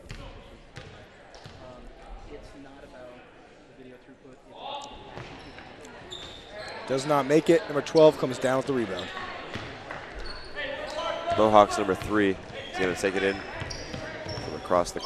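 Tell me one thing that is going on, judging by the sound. A crowd of spectators murmurs and cheers in an echoing gym.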